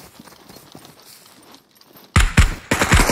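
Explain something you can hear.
Footsteps crunch softly on grass and gravel.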